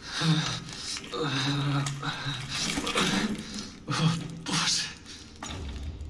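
Wet flesh squelches and tears.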